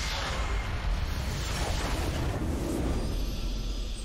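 A game's structure explodes with a loud rumbling blast.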